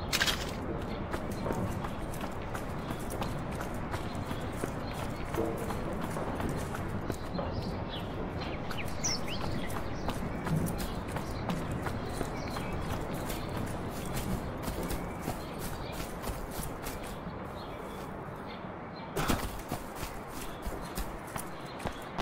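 Footsteps crunch steadily over gravel and grass.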